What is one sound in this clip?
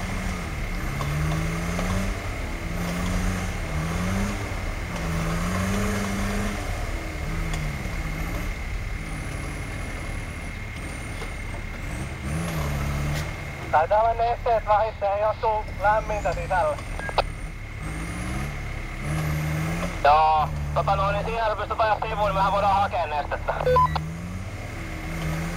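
A four-wheel-drive van's engine revs up and down under load.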